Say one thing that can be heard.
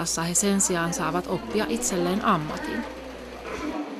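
A woman speaks with animation nearby.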